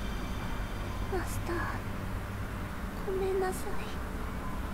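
A young woman speaks softly, close by.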